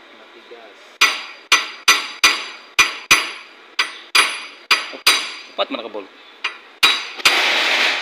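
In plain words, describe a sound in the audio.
A hammer strikes metal in sharp, ringing blows.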